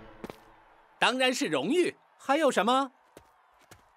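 A young man speaks with animation.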